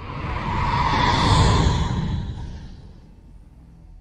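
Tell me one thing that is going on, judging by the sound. A spaceship engine roars past and fades away.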